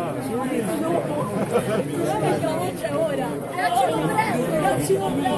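A crowd of people talk and chatter close by.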